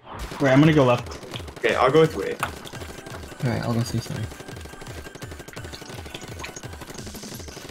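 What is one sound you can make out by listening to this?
A toy-like gun fires rapid, wet splattering shots.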